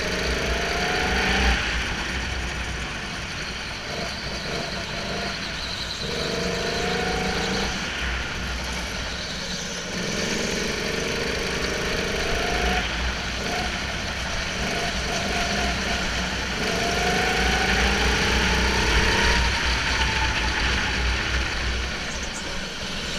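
A go-kart engine buzzes up close, rising and falling in pitch as it speeds up and slows for corners.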